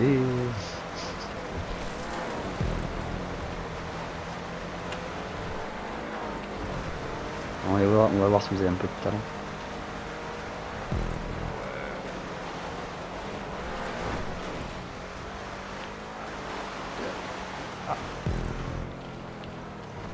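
Car tyres crunch over gravel and dirt.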